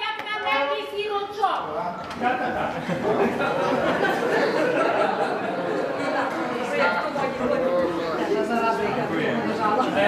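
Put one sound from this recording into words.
A crowd of guests chatters and murmurs in a large room.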